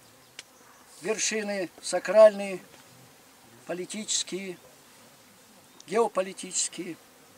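A middle-aged man speaks in short, solemn phrases close by.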